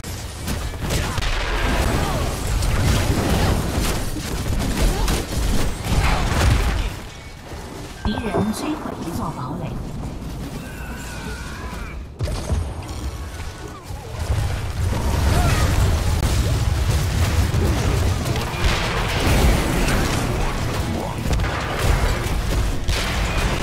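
Game explosions, laser blasts and spell effects crash and boom loudly.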